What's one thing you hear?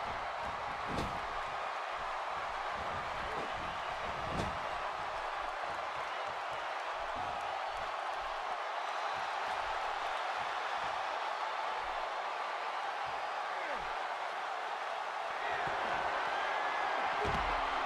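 Heavy bodies thud against the ring.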